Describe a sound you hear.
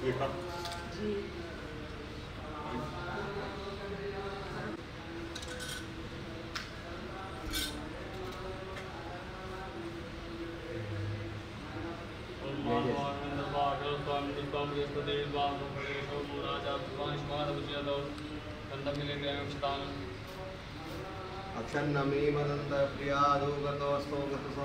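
Several men sing a devotional song together.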